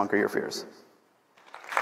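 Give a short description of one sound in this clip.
A man speaks into a microphone to an audience.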